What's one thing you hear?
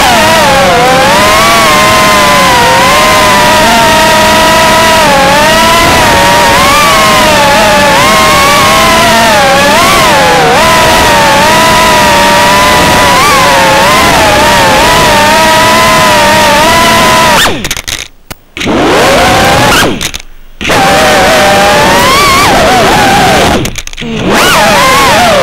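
A small drone's motors whine loudly, rising and falling in pitch.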